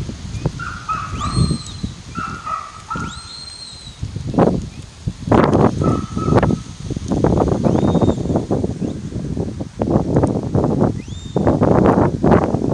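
A shepherd gives sharp, rising whistles from nearby, outdoors.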